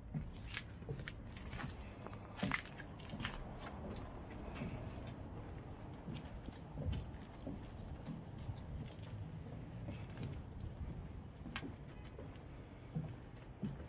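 Footsteps thud and creak on wooden boards.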